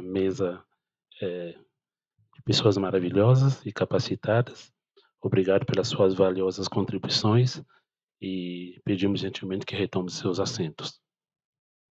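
A woman speaks calmly through a microphone.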